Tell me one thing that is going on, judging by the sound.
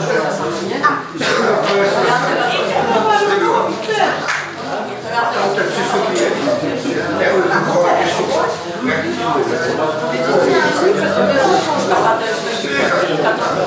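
A fiddle plays along with a lively bowed tune.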